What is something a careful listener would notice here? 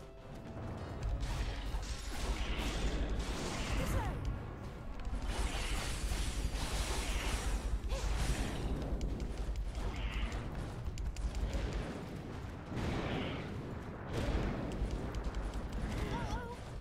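Sword slashes and magic blasts crash in a game battle.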